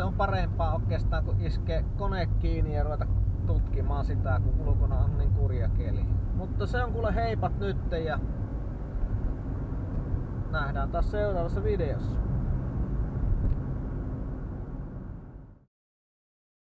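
Tyres rumble on the road.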